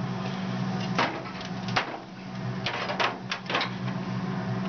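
A metal catch on a casting centrifuge clicks.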